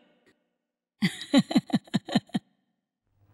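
An elderly woman laughs loudly close by.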